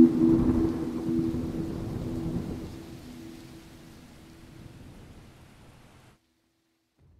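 Thunder rumbles loudly and slowly fades.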